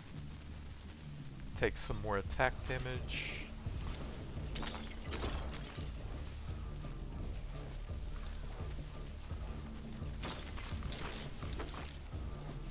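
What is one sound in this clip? Low electronic music plays steadily.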